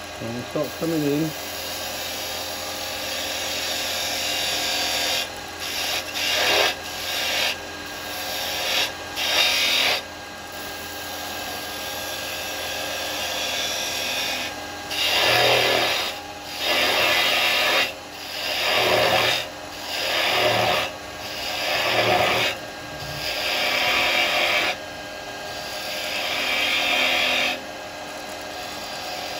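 A chisel scrapes and hisses against spinning wood in repeated strokes.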